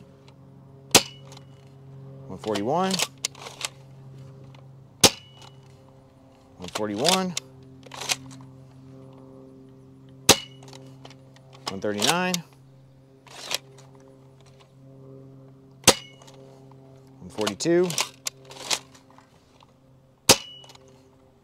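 A toy foam blaster fires with a sharp snap.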